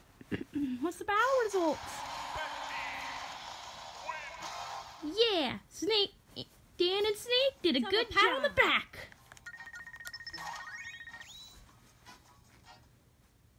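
Video game music and sound effects play from a small built-in speaker.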